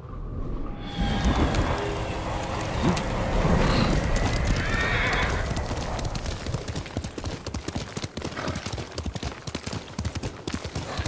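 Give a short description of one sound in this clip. A horse's hooves thud on a dirt path at a gallop.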